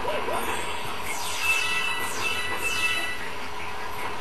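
A sparkling game chime rings out with bright twinkles.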